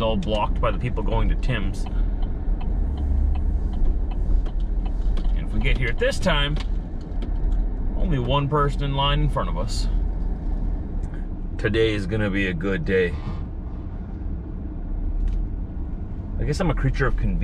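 A car engine hums low and steady.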